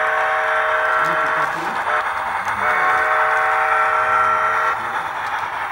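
A model steam locomotive blows its whistle.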